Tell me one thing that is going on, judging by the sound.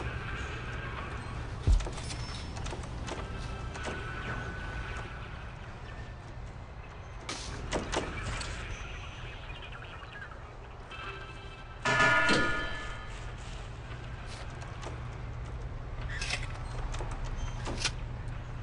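Soft clicks of a game's menu sound now and then.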